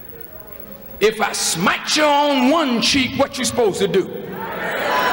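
A man speaks forcefully through a microphone in a large hall.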